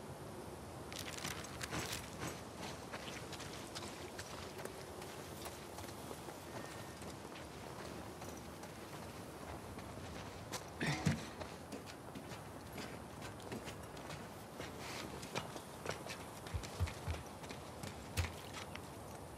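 Footsteps scuff on a hard path.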